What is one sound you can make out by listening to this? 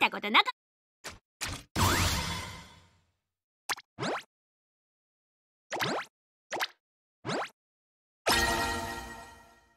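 A video game menu gives short tap sounds.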